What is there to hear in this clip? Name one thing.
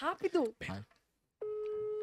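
A young woman laughs into a microphone.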